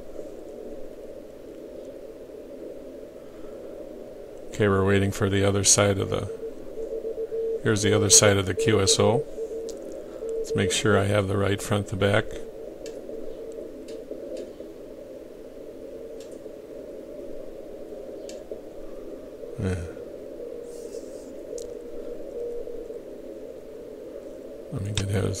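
Static hisses steadily from a radio receiver.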